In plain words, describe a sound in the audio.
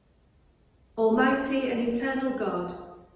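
A middle-aged woman chants a prayer aloud, close by.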